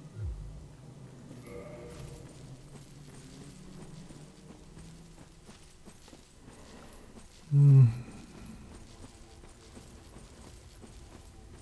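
Armoured footsteps crunch on rough ground.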